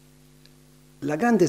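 An elderly man begins reading out through a microphone.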